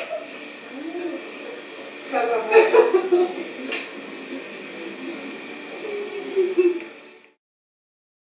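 A woman talks casually nearby.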